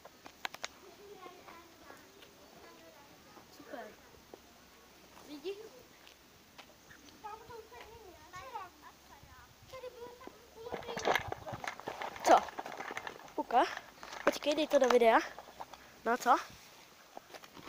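A boy talks close to a phone microphone.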